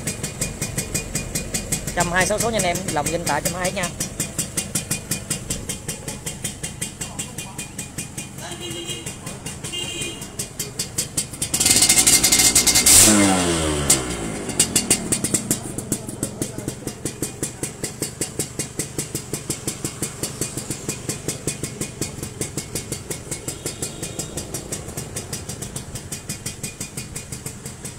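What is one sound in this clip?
A small motorcycle engine idles with a fast, steady putter.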